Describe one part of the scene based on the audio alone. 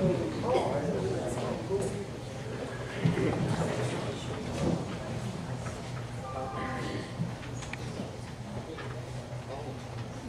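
An elderly man speaks calmly into a microphone, heard through loudspeakers in a large room.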